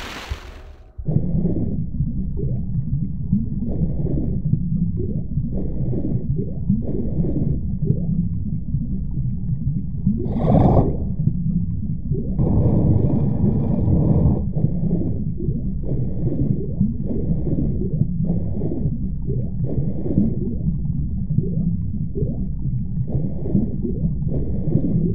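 A deep, muffled underwater rumble surges with each swimming stroke.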